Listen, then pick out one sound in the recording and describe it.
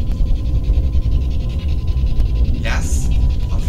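A young man speaks quietly close by.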